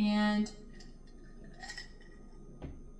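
A woman sips from a glass.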